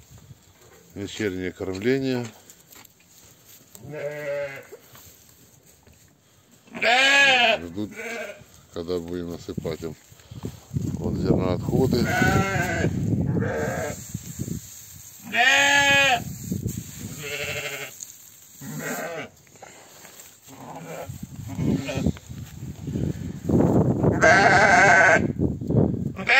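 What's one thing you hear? Sheep bleat loudly, close by, in wavering cries.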